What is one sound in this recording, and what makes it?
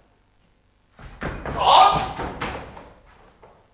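A man shouts briefly.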